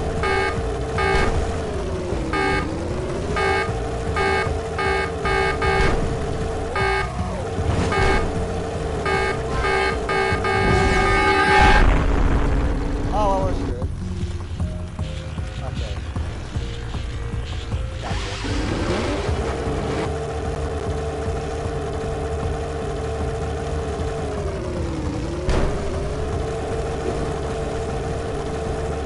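A hovering vehicle's engine hums steadily, its pitch dipping and rising as it swerves.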